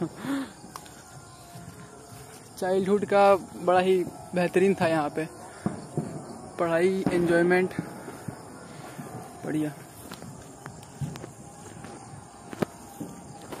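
Footsteps crunch softly on dry grass.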